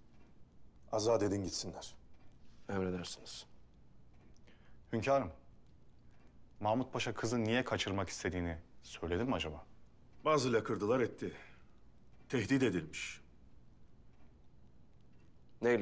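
A man speaks in a low, calm voice, in short phrases with pauses.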